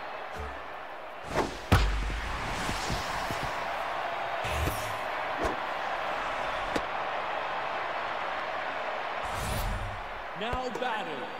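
A large crowd cheers and roars steadily.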